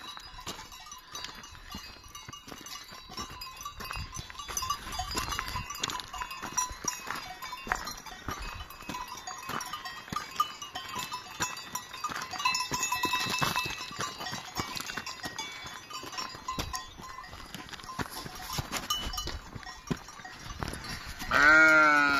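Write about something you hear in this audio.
Bells on grazing animals tinkle and clink.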